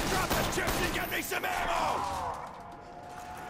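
A zombie snarls and shrieks close by.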